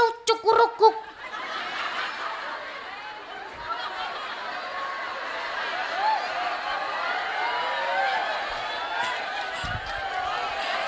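A crowd of women murmurs and chatters.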